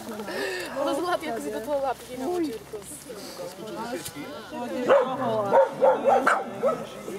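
Several young women talk with animation close by, their voices rising into loud calls.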